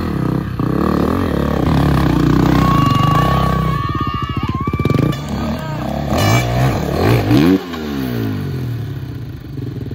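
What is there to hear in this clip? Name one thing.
A dirt bike engine revs loudly outdoors, rising and falling in pitch.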